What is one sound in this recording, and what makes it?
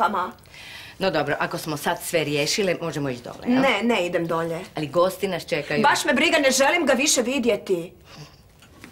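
An older woman speaks calmly and warmly, close by.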